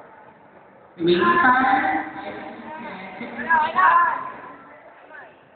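A young man speaks loudly and with animation through a microphone in a large echoing hall.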